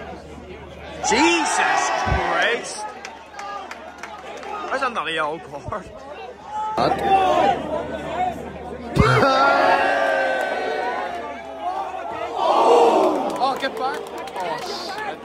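Nearby men in a crowd call out and talk loudly.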